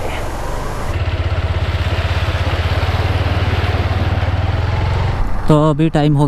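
Water rushes and splashes under a motorcycle's wheels.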